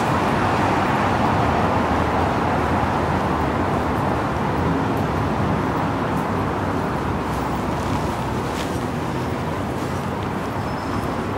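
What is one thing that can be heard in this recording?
Steady city traffic hums in the distance outdoors.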